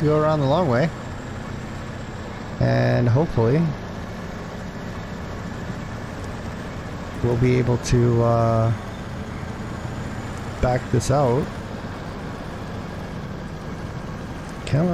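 A heavy truck engine rumbles steadily as it drives slowly.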